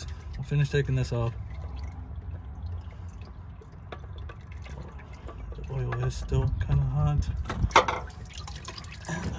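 A hand twists a greasy oil filter loose with faint scraping.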